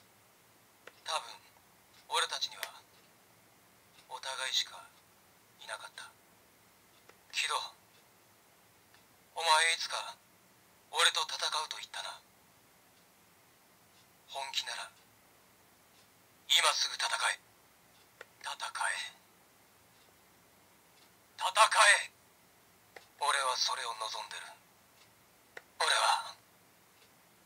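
A toy belt plays short recorded voice calls through a small speaker, one after another with pauses between.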